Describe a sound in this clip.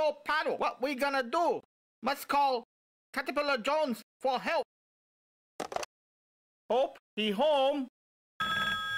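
A man speaks angrily and with animation.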